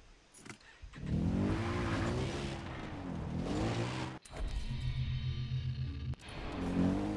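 A quad bike engine starts and revs.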